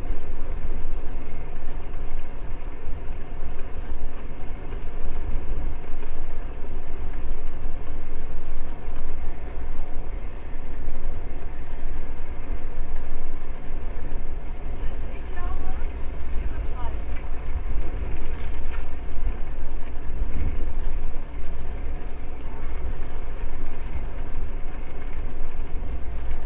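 Wind rushes and buffets loudly past a moving rider, outdoors.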